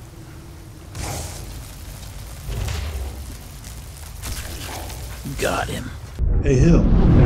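A magic blast crackles and booms.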